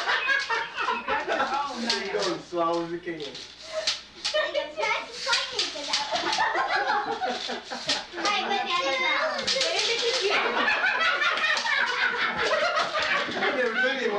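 Several people chatter and laugh nearby in a room.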